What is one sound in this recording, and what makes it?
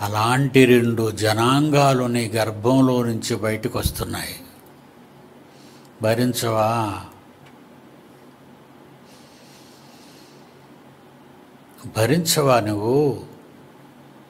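An elderly man speaks with animation into a close microphone, in short bursts with long pauses.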